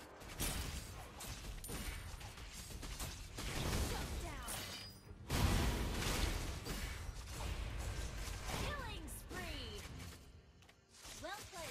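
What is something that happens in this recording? Video game battle effects clash and blast loudly.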